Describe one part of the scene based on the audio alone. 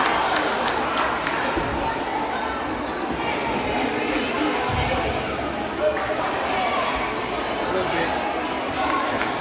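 A crowd of voices murmurs and calls out in a large echoing gym.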